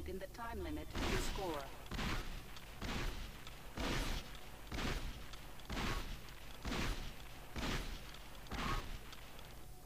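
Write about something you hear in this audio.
A gun fires loud shots at a steady, regular pace.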